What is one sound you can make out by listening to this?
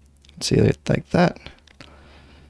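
A man speaks briefly and casually.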